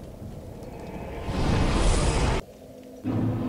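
A deep rushing whoosh swells and then cuts off abruptly.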